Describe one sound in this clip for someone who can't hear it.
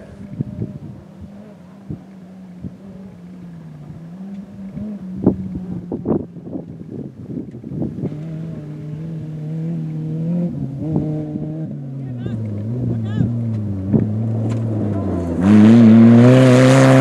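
An off-road buggy's engine roars, growing louder as it approaches.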